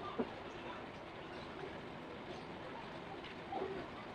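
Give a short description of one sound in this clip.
A plastic bottle is set down on concrete.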